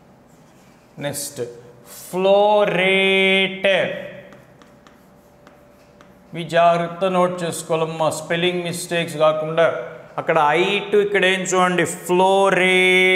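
A man speaks calmly and clearly, as if teaching.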